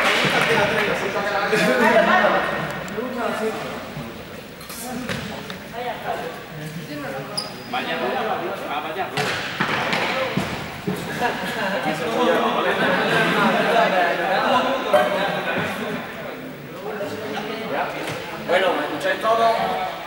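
Children and teenagers chatter and call out nearby, echoing in a large hall.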